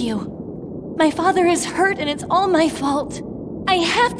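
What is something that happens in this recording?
A young woman speaks with distress.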